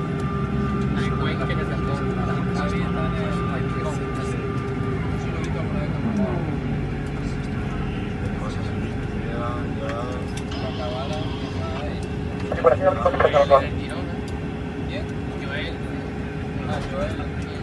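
Aircraft engines hum steadily inside a cabin.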